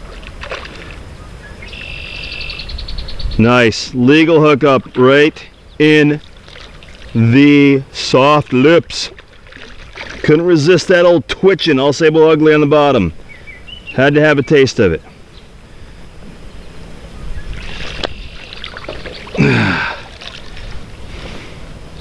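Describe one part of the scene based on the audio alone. A fish splashes and thrashes at the water's surface.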